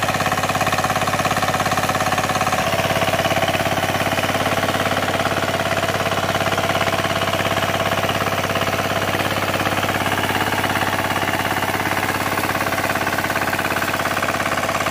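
A small diesel engine chugs loudly and steadily.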